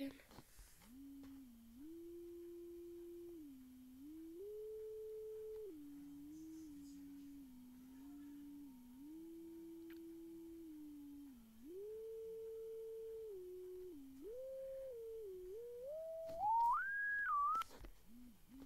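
A person whistles a slow, wandering tune close by.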